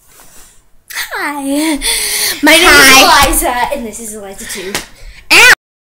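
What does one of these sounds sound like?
A teenage girl laughs close by.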